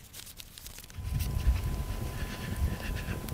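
A fire flares up and roars.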